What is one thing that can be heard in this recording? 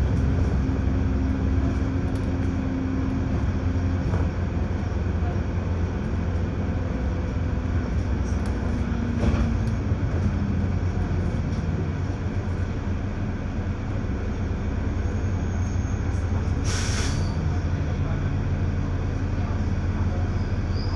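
A bus engine rumbles steadily from inside.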